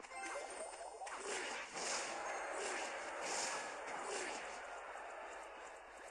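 Small game figures clash in a battle with clanging hits.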